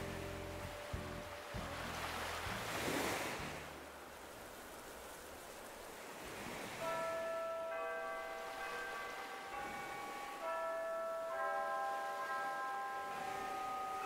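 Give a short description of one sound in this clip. Gentle waves wash onto a sandy shore.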